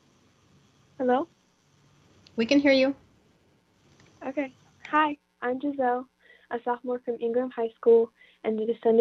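A young woman speaks through an online call.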